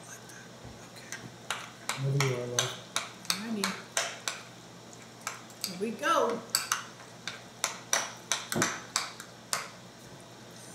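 A spoon clinks and scrapes against a ceramic bowl.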